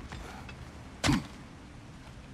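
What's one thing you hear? A heavy thud lands once.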